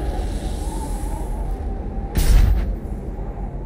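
A burst of energy explodes with a crackling blast.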